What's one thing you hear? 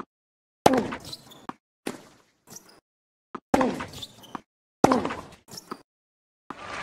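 A tennis racket strikes a ball back and forth with sharp pops.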